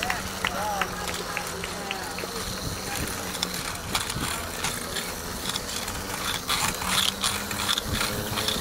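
A runner's footsteps patter on pavement.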